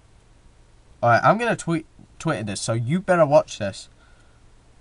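A young man speaks close to a microphone, briefly and casually.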